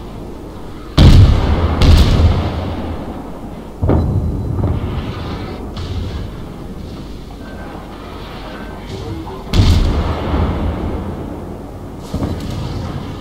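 Heavy ship guns fire in loud, booming salvos.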